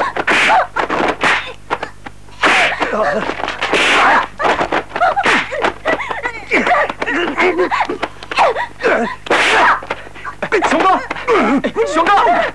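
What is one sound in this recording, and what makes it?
A woman screams in distress close by.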